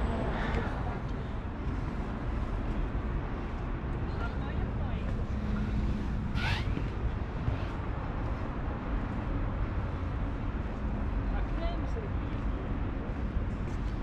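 Wind blows steadily outdoors, rumbling against the microphone.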